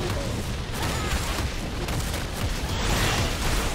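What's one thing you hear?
Fiery blasts burst and crackle in a game.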